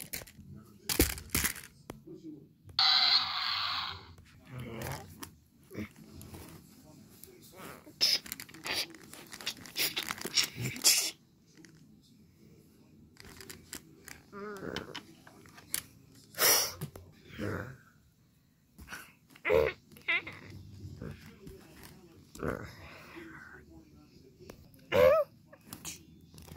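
Plastic toys knock and scrape together on carpet.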